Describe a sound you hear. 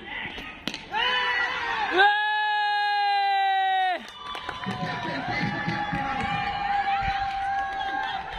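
Men cheer and shout excitedly outdoors.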